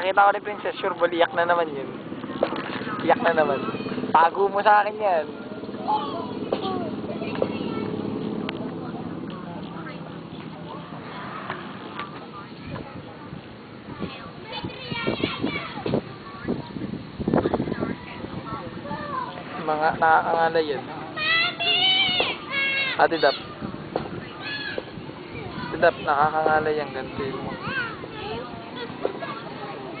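Several adults chat together outdoors.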